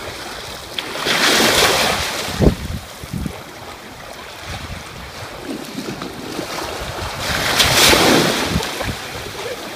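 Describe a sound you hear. A man splashes through shallow sea water.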